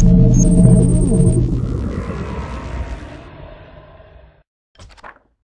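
A deep, booming intro sound swells and then slowly fades away.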